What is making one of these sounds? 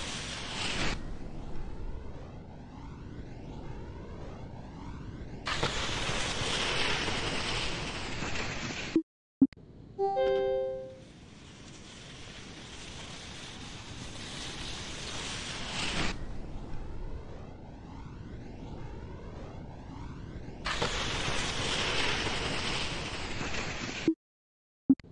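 Wind rushes loudly past a flying ski jumper.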